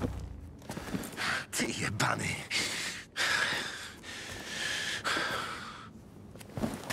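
A man speaks tensely and angrily, close by.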